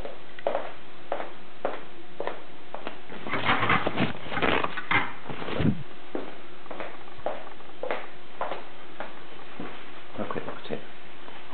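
Plastic parts click and knock as they are handled close by.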